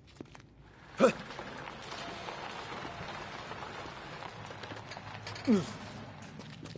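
Hands rummage through a car with a rustling, scraping noise.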